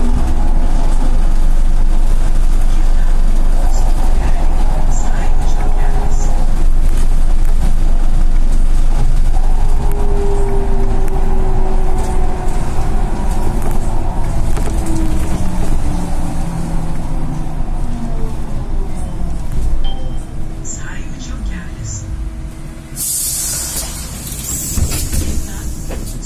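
A bus engine hums and whines steadily from inside the bus.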